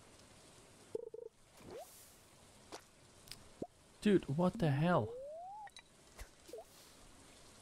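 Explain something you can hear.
Video game sound effects chime, bloop and swoop upward in pitch.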